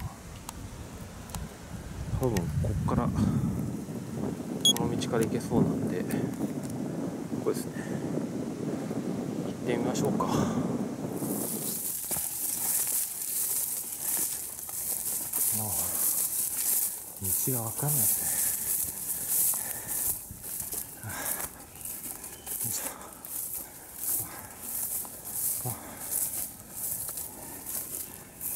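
Footsteps rustle and crunch through dry leaves and tall grass.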